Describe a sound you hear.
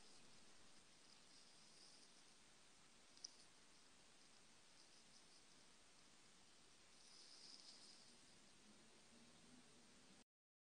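A woman speaks softly and calmly into a close earphone microphone.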